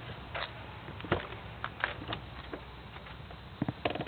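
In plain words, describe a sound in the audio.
A car door unlatches and swings open.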